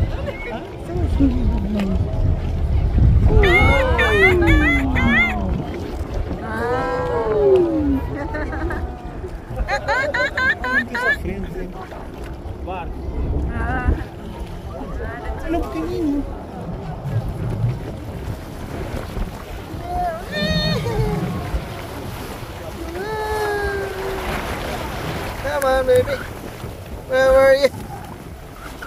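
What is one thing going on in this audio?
Dolphins whistle and squeak in high, gliding calls.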